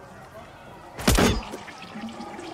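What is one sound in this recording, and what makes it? A pistol fires a single sharp shot nearby.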